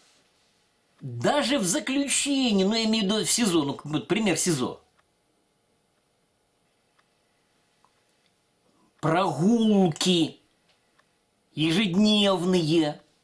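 An elderly man speaks calmly and with emphasis close to a microphone, pausing between phrases.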